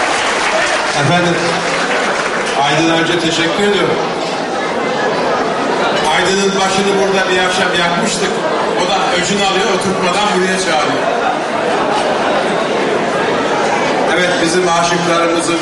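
An elderly man speaks with animation into a microphone through loudspeakers in a large echoing hall.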